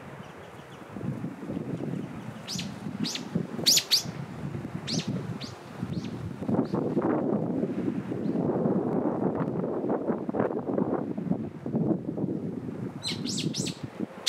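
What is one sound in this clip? Small waves lap gently against rocks on the shore.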